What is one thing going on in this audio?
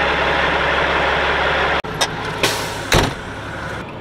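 A truck door slams shut.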